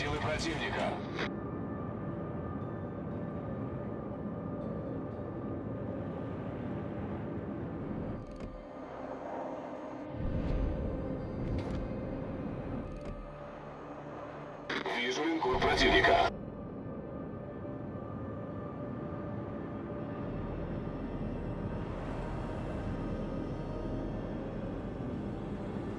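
A ship's engines rumble low and steadily.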